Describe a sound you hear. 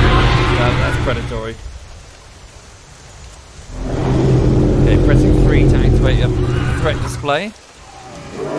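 A large creature gives short, rising calls.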